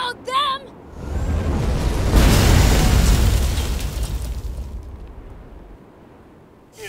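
A heavy craft crashes into sand with a deep, rumbling impact.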